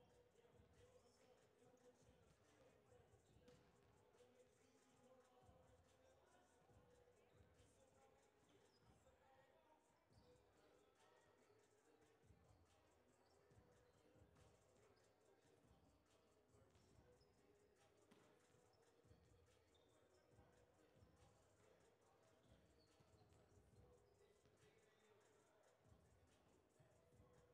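A volleyball is struck repeatedly in a large echoing gym.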